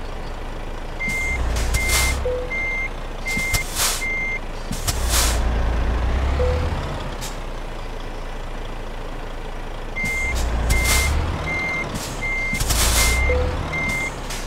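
A warning beeper chimes in short, even beeps.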